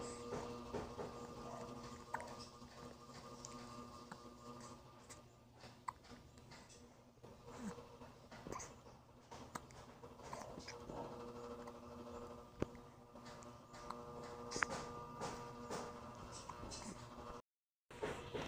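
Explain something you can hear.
A baby makes soft cooing sounds.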